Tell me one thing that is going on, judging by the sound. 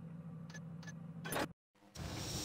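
A button clicks once.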